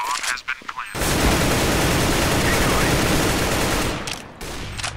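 A rifle fires a long, loud burst of rapid shots.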